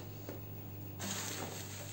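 A plastic sheet rustles.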